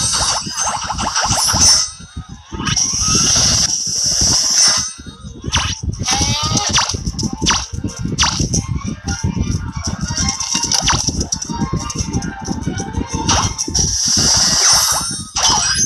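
A cartoon game's impact effects bang and crash.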